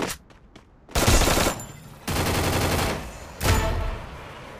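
A gun fires in quick, loud bursts.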